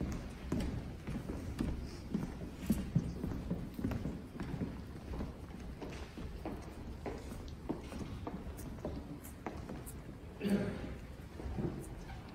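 Footsteps shuffle across a large echoing hall as a group walks past.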